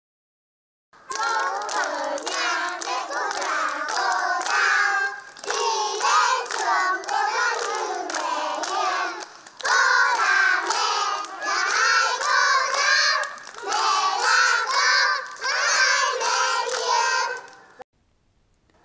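A group of young children sing loudly together outdoors.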